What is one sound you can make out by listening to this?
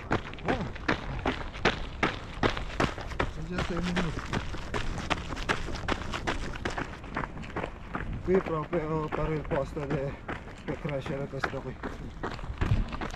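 Running shoes crunch rhythmically on a gravel path.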